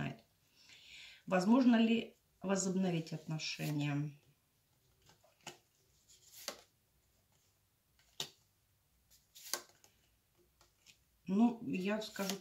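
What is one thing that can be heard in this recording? Stiff cards are shuffled by hand, flicking and slapping together.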